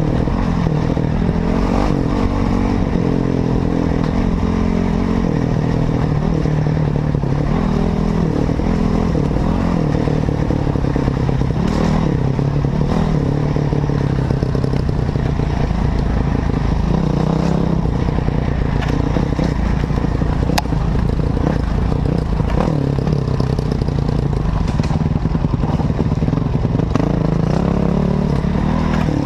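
Wind buffets loudly past the rider's helmet.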